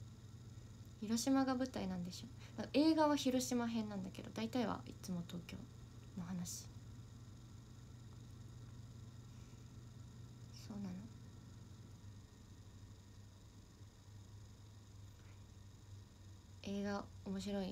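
A young woman speaks casually and close by, in short bursts with pauses.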